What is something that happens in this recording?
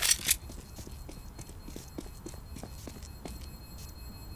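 Footsteps tread quickly on concrete.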